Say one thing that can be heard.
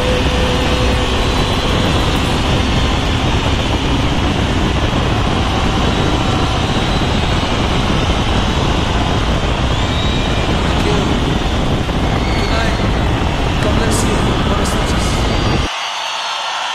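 Wind roars loudly past a moving motorcycle.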